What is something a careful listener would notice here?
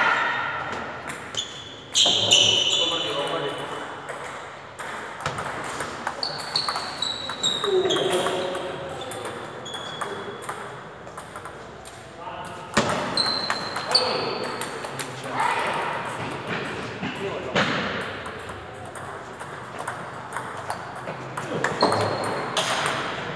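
Sneakers squeak sharply on a smooth floor.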